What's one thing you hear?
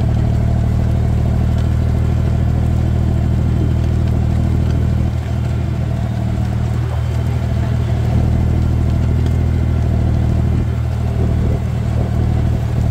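A plough turns over soil with a soft crunching.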